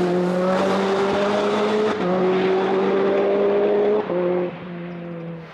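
A car engine revs hard and shifts gears as the car speeds away.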